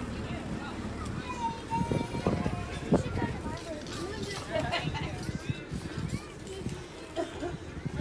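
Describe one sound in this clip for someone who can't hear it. Women and children chat.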